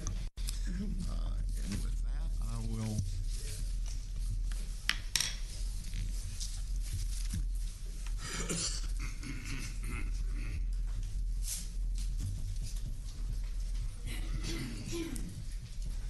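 A woman speaks calmly into a microphone in a large room.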